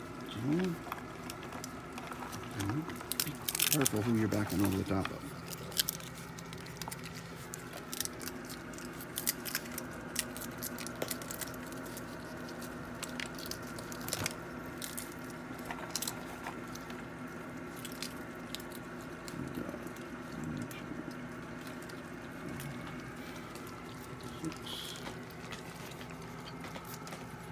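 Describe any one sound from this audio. Raccoons crunch and chew food up close.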